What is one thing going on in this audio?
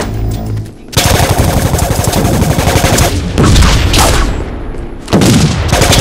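Rapid gunfire blasts loudly and continuously.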